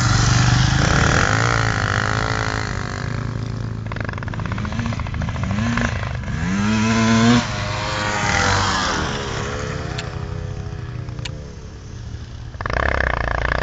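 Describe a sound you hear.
A motorbike engine revs up and down nearby.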